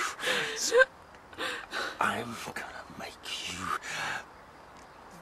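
A man speaks up close in a menacing, growling voice.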